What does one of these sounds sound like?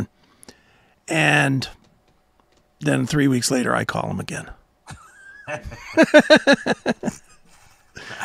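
An elderly man speaks and laughs into a close microphone.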